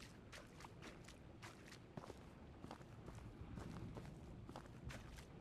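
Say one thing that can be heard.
Footsteps crunch quickly over loose, gritty ground.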